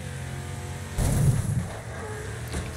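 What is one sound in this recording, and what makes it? Metal crunches as cars collide.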